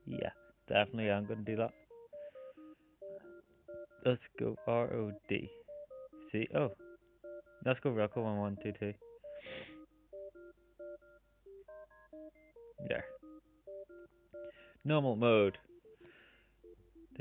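A simple electronic game tune plays in short, bouncy beeps.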